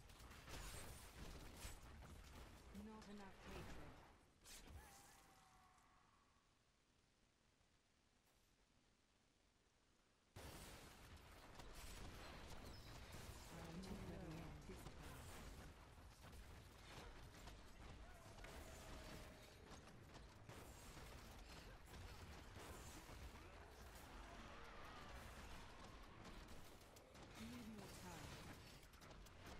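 Fiery explosions boom and crackle in rapid bursts.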